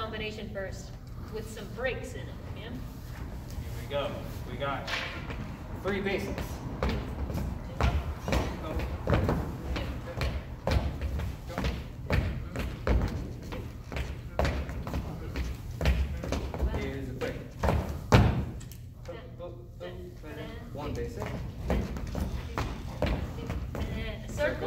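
A young man speaks calmly, close by, in an echoing room.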